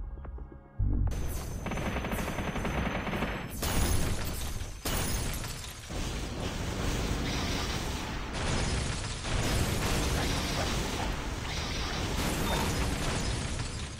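Crystal spikes shatter and crash.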